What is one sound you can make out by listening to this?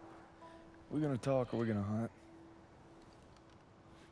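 A second man answers calmly close by.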